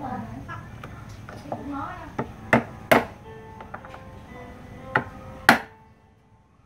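A pestle pounds crab shells with sharp knocks.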